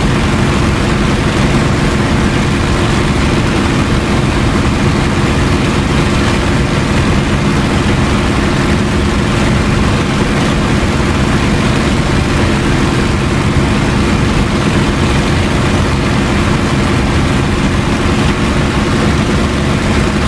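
Wind rushes past the cockpit.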